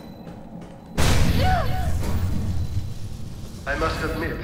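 Sparks burst and hiss loudly from a damaged wall panel.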